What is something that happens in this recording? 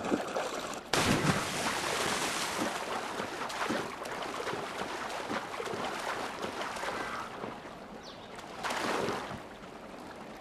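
Water sloshes and splashes as someone swims.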